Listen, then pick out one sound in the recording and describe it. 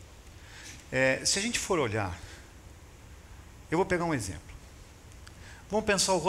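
A middle-aged man speaks with pauses through a microphone.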